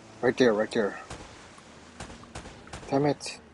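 Gunshots crack out sharply, one after another.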